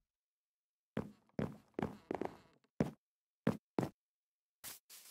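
Footsteps thud softly on wooden boards.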